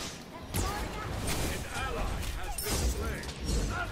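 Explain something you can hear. Magic ice blasts crash and crackle in quick bursts.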